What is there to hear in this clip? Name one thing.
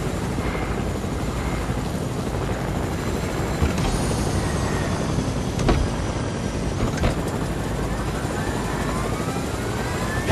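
A helicopter's rotor thrums steadily close by.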